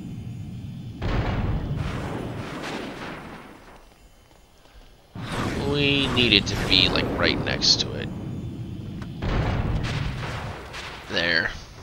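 Magic spells crackle and burst with sparkling blasts.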